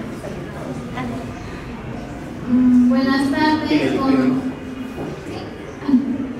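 A young woman speaks through a microphone and loudspeakers with animation.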